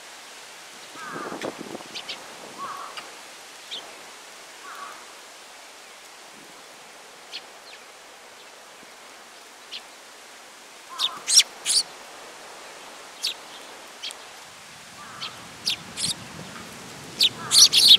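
A small bird chirps close by.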